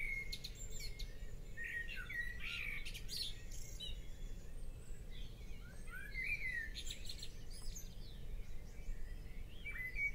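A light wind rumbles outdoors.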